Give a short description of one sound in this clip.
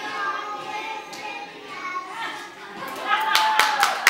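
Young children sing together.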